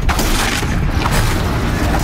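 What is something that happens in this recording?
A fiery explosion roars loudly.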